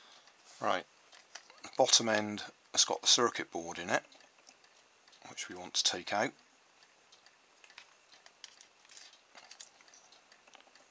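Small plastic parts click and rustle softly as they are handled.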